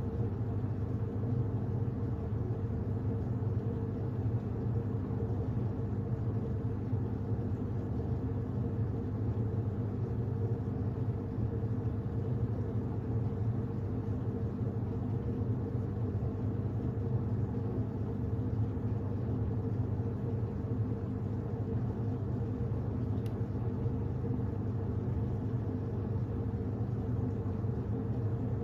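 A washing machine hums steadily with a low drone.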